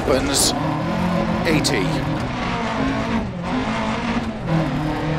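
A rally car engine roars and revs, shifting through gears.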